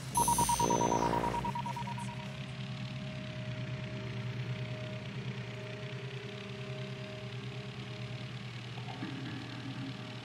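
A small drone hums steadily as it flies.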